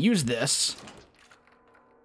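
A key turns in a door lock with a metallic click.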